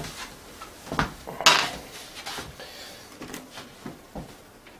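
A hand bumps and rubs against a wooden board close by.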